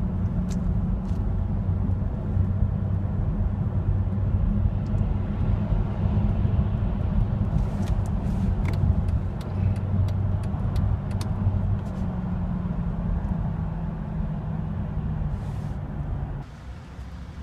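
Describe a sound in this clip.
A car engine idles with a low, steady rumble inside the car.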